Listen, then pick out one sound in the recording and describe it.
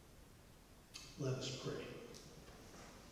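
A man speaks briefly into a microphone in a large echoing hall.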